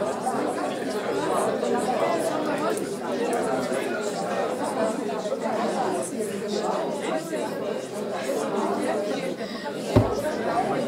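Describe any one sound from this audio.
A man speaks steadily to a room.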